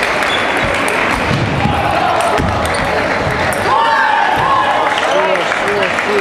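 Table tennis balls click against paddles and tables.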